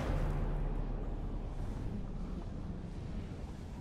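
A fire roars with a low rumble.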